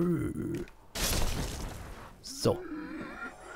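A blade slashes and strikes a body with a heavy hit.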